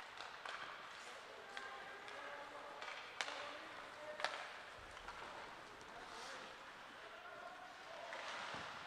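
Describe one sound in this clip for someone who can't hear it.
Skates scrape and carve across ice in a large echoing rink.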